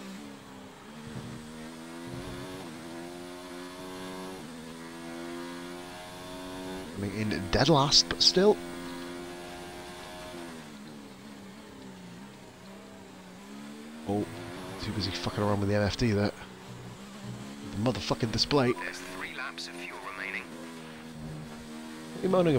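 A racing car engine roars, rising in pitch as it speeds up and dropping as it slows for corners.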